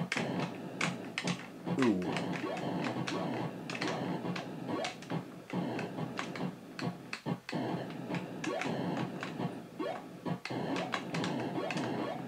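Retro video game aliens explode with short bursts.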